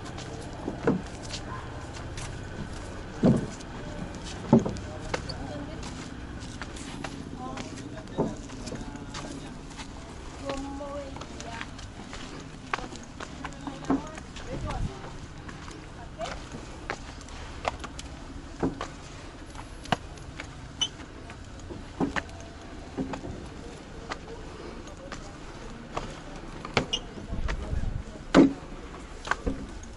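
Footsteps scuff and tap on stone outdoors.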